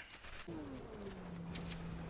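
Water rushes in a river.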